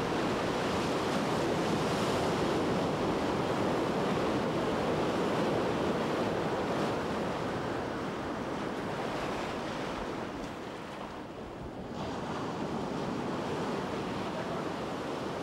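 Waves wash and roll steadily on the open sea.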